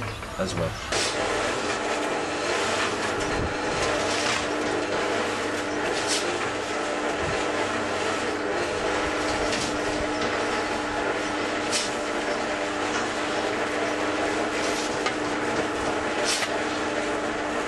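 A cement mixer engine drones and its drum churns steadily.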